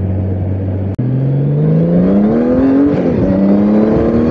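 A motorcycle engine revs up as it speeds up.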